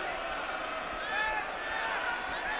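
Whistles shrill from the crowd.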